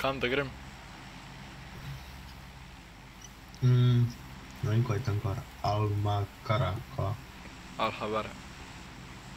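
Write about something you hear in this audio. A young man talks casually in bursts through a close microphone.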